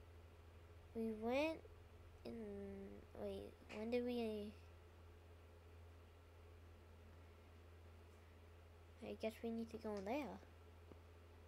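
A young child speaks close to a microphone in short bursts.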